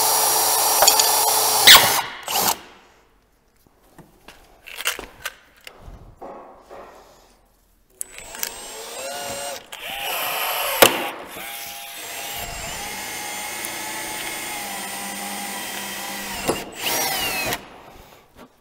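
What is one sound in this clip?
A cordless power drill whirs in bursts.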